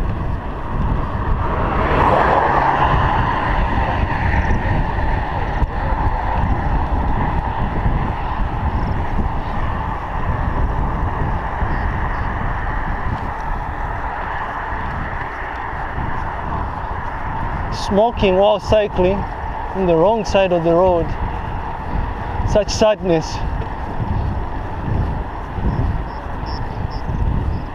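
Wind buffets a microphone while riding a bicycle.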